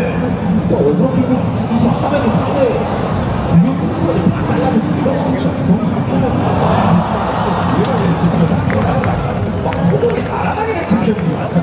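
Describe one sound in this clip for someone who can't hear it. A large outdoor crowd chatters loudly all around.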